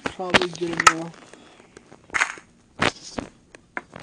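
A wooden block is set down with a dull knock.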